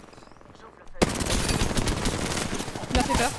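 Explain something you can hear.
An explosion bursts loudly.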